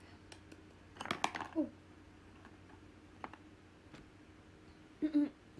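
A young woman speaks softly and close by, in short bursts.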